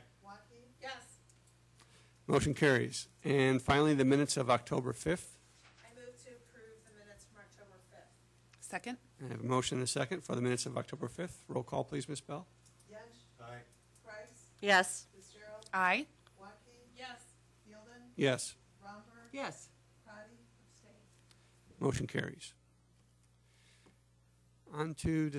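A man speaks calmly into a microphone, heard through a loudspeaker in a room.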